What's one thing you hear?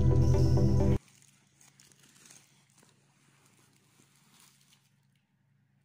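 Plastic wrappers rustle and crinkle as a child handles them.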